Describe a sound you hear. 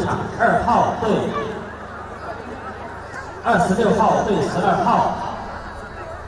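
A crowd of spectators shouts and cheers in the distance.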